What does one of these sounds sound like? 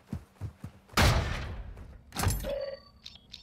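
A metal door bangs open.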